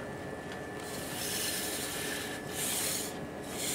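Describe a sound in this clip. Compressed air hisses from a robot in loud bursts.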